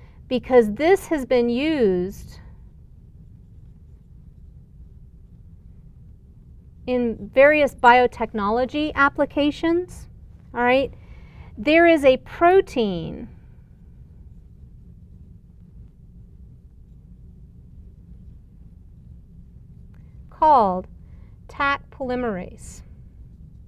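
A woman lectures calmly, close to a microphone.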